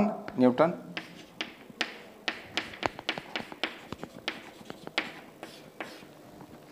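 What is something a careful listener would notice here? Chalk taps and scratches rapidly on a board.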